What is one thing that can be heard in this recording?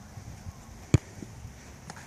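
A foot kicks a football.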